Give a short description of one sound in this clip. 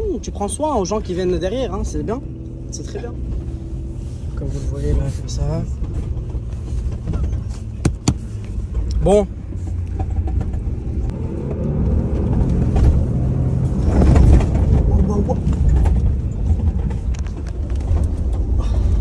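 A car engine rumbles steadily while driving over rough ground.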